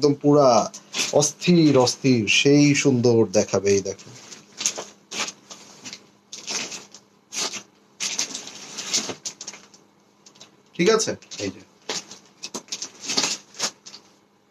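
A man speaks close by, with animation.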